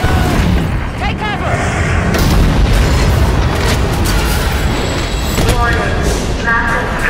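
A man speaks excitedly into a microphone.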